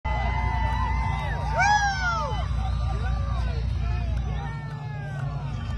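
A crowd shouts and cheers.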